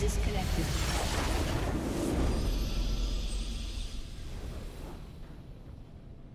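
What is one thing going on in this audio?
A triumphant game fanfare swells loudly and then slowly fades away.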